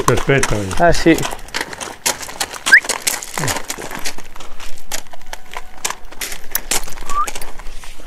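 Horse hooves crunch and clop on gravel.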